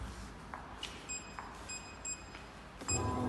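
A touch panel beeps several times in quick succession.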